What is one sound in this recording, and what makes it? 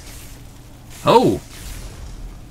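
Electricity crackles and zaps in a sharp burst.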